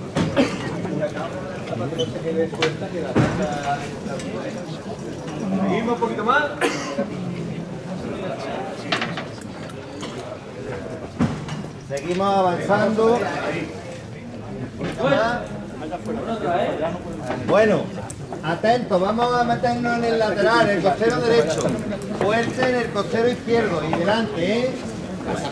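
A crowd murmurs and chatters close by, echoing between walls.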